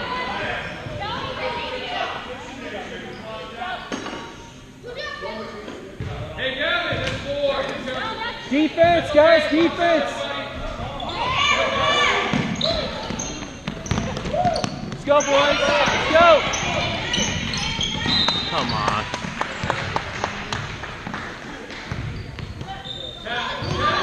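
Spectators talk and cheer close by in a large echoing gym.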